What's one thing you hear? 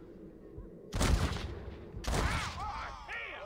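A gunshot cracks loudly.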